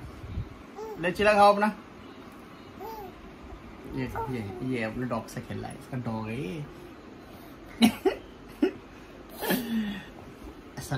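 A baby babbles and squeals.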